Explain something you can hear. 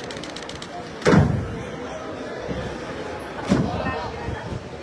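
Cardboard boxes thud onto a metal truck floor.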